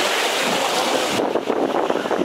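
Foamy waves wash over sand.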